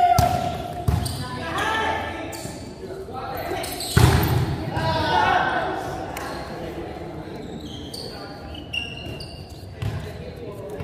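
A volleyball is struck with sharp smacks in a large echoing hall.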